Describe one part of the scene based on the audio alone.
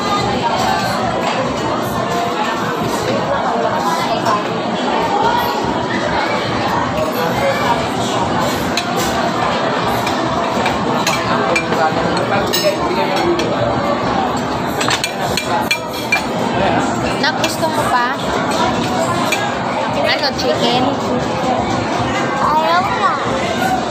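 A busy crowd chatters all around.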